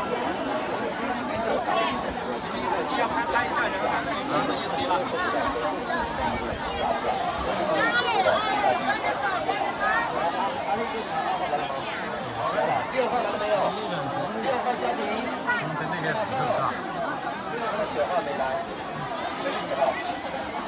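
A large crowd of men and women chatters all around, close by and outdoors.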